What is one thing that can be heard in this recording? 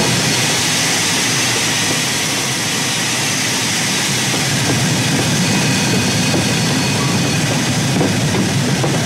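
A steam locomotive hisses loudly.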